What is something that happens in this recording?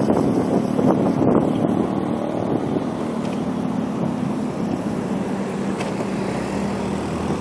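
Traffic rumbles along the street around.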